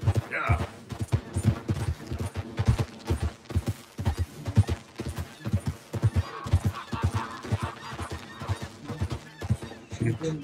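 Horse hooves thud steadily on a dirt trail.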